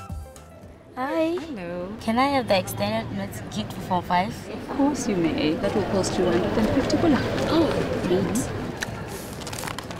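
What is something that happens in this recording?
A woman speaks warmly at close range.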